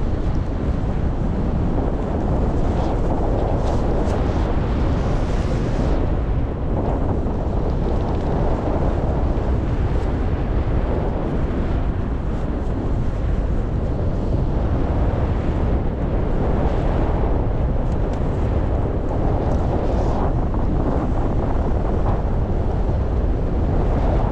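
Strong wind rushes and buffets steadily past high in the open air.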